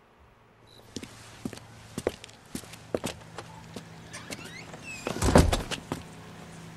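Footsteps tap on a wooden porch.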